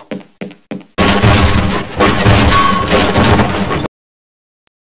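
Splintering wood cracks loudly.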